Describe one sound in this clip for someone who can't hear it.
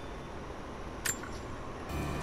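A short, bright interface click sounds as a menu closes.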